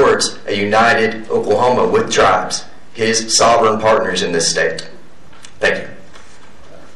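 A young man speaks calmly, close by.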